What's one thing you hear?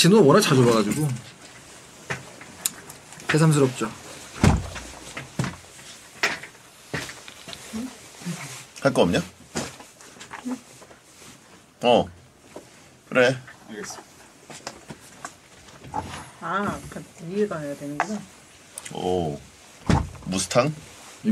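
A man speaks close into a microphone in short bursts with pauses.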